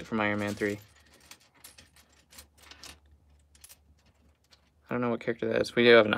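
Small plastic pieces clatter and click as hands sift through them.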